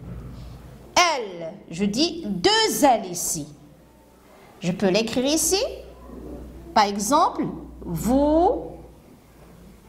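A woman speaks calmly and clearly, as if teaching, close by.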